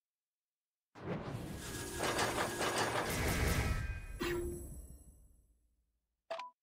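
A loud rushing whoosh swells and slowly fades.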